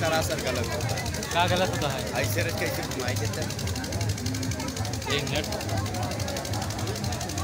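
A crowd chatters and shouts loudly close by.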